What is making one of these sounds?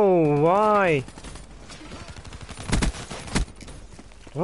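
Gunshots ring out in bursts.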